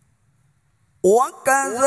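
A man sings loudly through a microphone, his voice rising in pitch.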